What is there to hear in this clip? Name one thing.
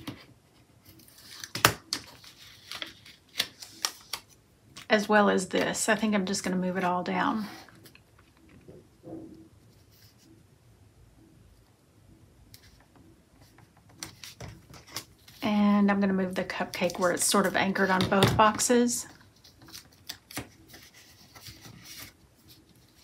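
Paper rustles and crinkles under fingers.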